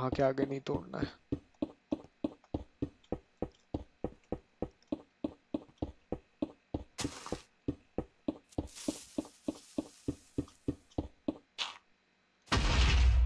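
A pickaxe chips at stone in quick, steady blows.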